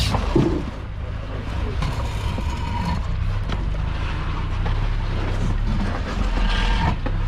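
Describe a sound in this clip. A vehicle engine idles low and steady close by.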